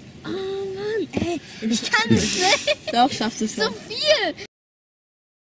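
A girl laughs close by.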